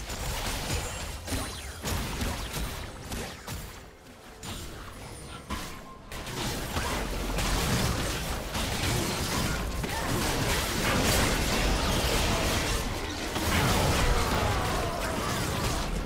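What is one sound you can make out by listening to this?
Magic blasts and weapon hits crackle and boom in a fast fight.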